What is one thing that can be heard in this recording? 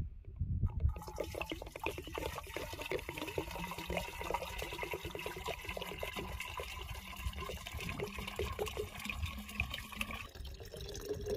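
Water pours and splashes into a metal pot.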